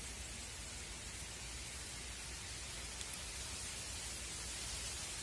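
Fingers softly crackle a small dry object.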